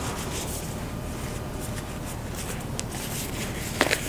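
A rubber glove snaps and rustles as it is pulled on.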